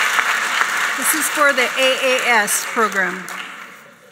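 A woman speaks clearly through a microphone in a large hall.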